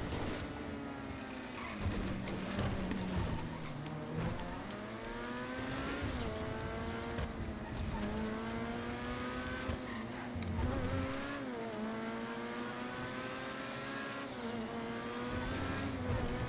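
A car engine roars and revs up and down as it speeds along.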